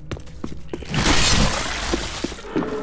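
An explosion bursts loudly with a wet splatter.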